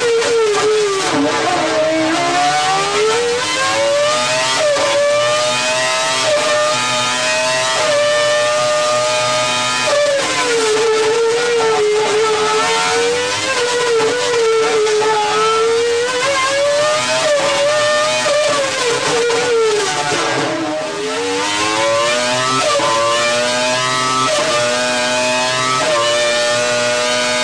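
A racing engine screams loudly, its revs rising and falling again and again.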